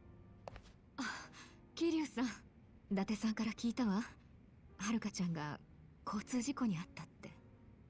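A young woman speaks calmly and close.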